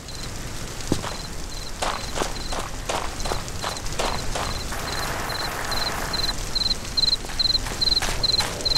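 Quick footsteps patter over the ground.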